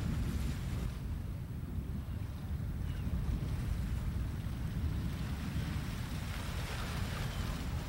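Wind blows steadily across the microphone outdoors.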